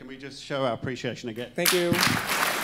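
A man speaks into a microphone in a large hall.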